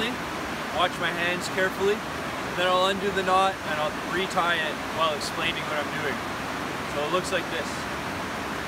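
A young man talks calmly close by, outdoors.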